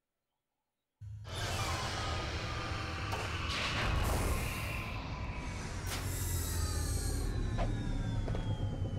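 A spaceship engine hums and roars loudly.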